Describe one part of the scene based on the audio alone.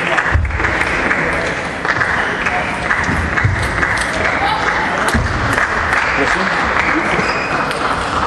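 A busy crowd murmurs throughout a large echoing hall.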